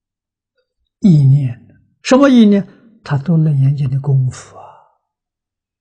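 An elderly man speaks calmly and clearly into a close microphone, in short phrases.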